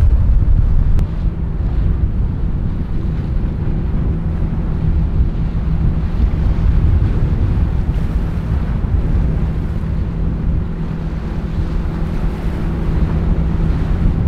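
A large boat's engine rumbles low and steady as it cruises by.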